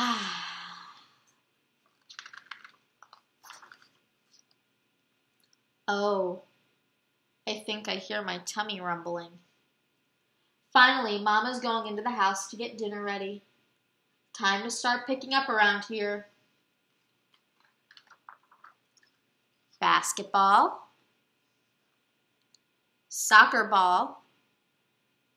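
A young woman reads aloud from a book in a calm, clear voice close by.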